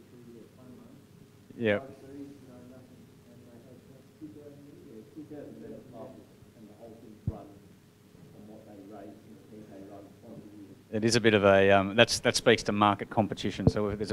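A man speaks calmly to an audience through a microphone and loudspeakers.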